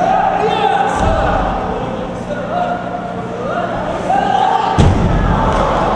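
A body thuds heavily onto a padded mat in a large echoing hall.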